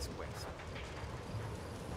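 Footsteps thud on a dirt floor.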